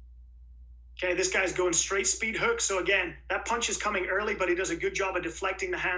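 A young man talks calmly and clearly into a close microphone.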